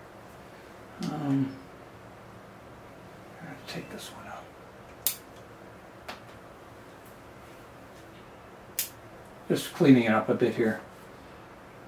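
An older man speaks calmly and briefly, close by.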